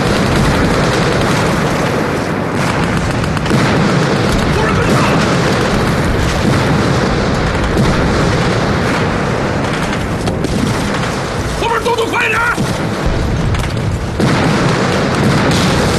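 Rifles fire in bursts amid explosions.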